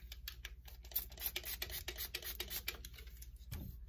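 A spray bottle spritzes.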